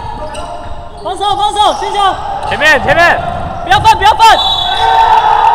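Sneakers squeak sharply on a hardwood court in an echoing gym.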